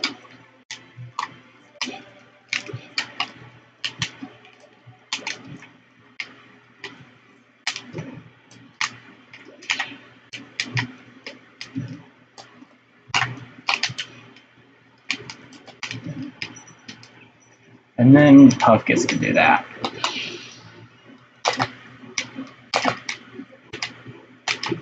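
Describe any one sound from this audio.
Game controller buttons click and clack quickly.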